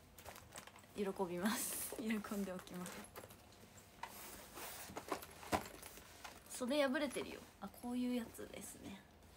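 A young woman speaks softly and close by, in short bursts.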